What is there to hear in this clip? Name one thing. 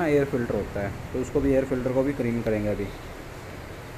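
A young man speaks calmly nearby.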